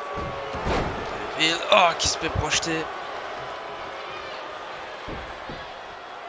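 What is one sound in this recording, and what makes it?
Bodies thud heavily on a wrestling ring mat.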